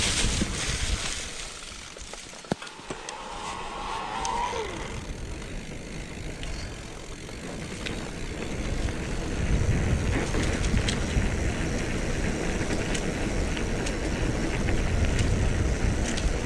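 Bicycle tyres roll and rattle over a gravel track.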